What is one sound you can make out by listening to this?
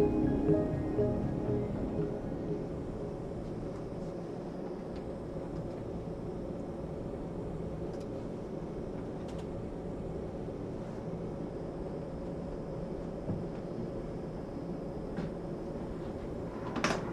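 An aircraft cabin hums steadily.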